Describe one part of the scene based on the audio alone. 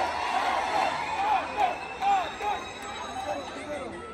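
People in a crowd whistle and cheer.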